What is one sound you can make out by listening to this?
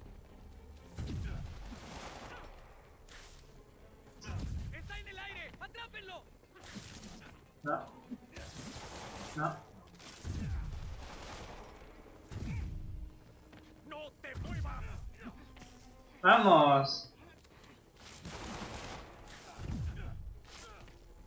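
Heavy blows thud again and again.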